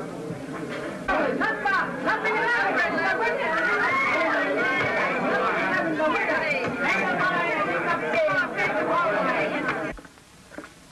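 A crowd of people chatters loudly.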